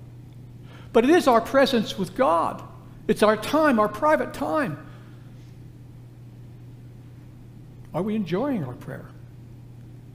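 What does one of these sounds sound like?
An elderly man speaks with animation through a microphone, pausing between phrases.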